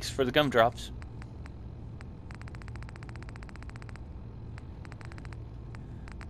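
Soft electronic clicks tick, sometimes in quick runs.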